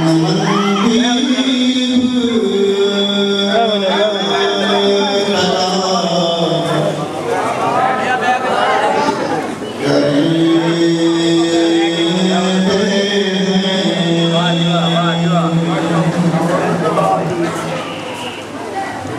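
A man sings a chant loudly into a microphone, heard through loudspeakers.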